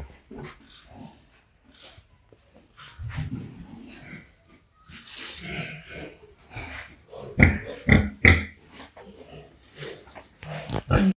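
Pigs grunt and snort close by.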